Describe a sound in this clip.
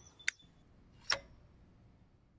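A scooter kickstand clicks into place.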